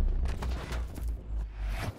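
A gun fires rapid shots in a video game.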